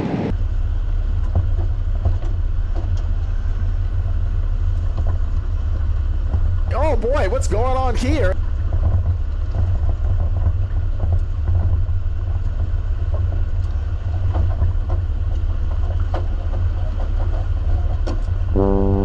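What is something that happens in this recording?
A truck engine rumbles steadily at low pitch as the truck drives along.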